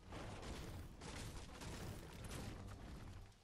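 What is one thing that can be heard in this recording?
A pickaxe strikes and splinters wood.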